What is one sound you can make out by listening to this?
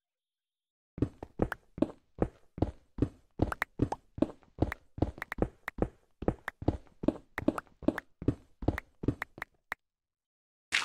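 A pickaxe chips rapidly at stone, block after block.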